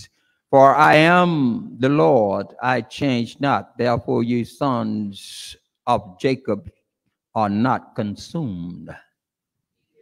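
An elderly man preaches with animation into a microphone.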